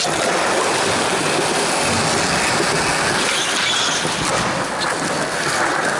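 Skateboard wheels roll and rumble over smooth concrete close by.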